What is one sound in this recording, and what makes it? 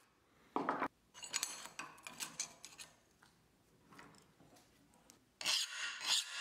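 A fingernail scrapes along a steel edge.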